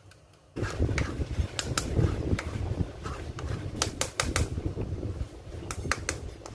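A spoon taps and clinks against a metal sieve.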